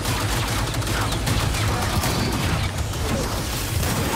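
A shotgun blasts loudly.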